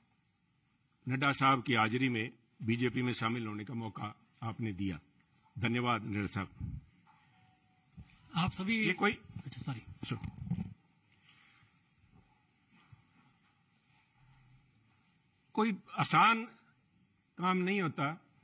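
An elderly man speaks calmly and firmly into a microphone, in bursts with pauses.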